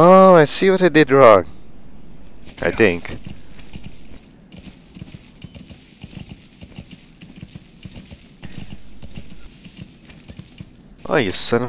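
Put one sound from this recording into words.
A horse's hooves clop steadily on rough ground.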